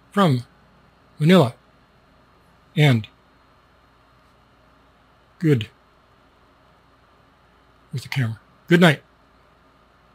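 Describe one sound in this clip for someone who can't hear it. An older man speaks in short, separate bursts close to a microphone.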